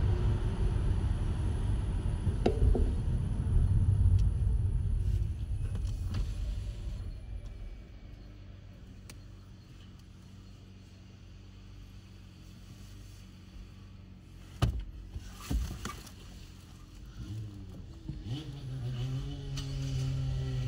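A car engine hums while driving along a road.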